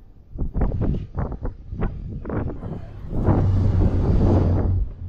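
Wind rushes over the microphone of a moving bicycle.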